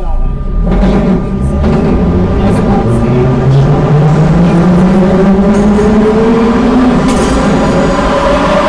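An electric train motor whines, rising steadily in pitch.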